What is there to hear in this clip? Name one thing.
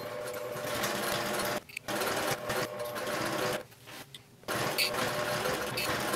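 A sewing machine runs and stitches, stopping briefly now and then.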